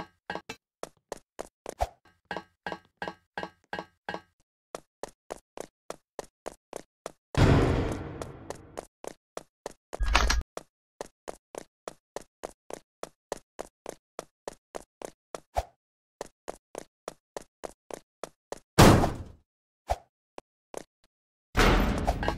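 Quick footsteps patter steadily.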